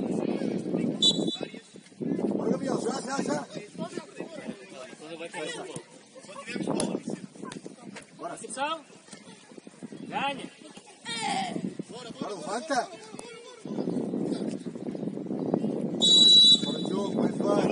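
A referee blows a short, sharp whistle.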